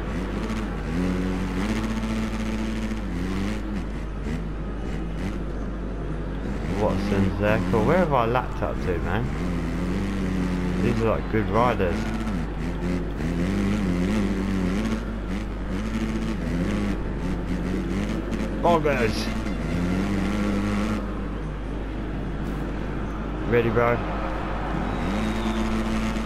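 A motorcycle engine drones and revs up and down.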